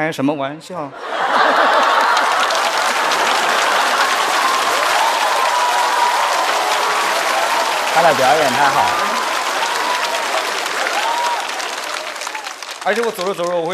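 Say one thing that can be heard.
A large audience claps loudly.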